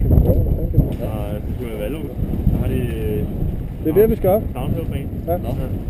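A man talks nearby over the wind.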